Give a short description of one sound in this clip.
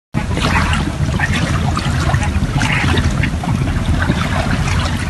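An outboard motor idles with a low, steady rumble.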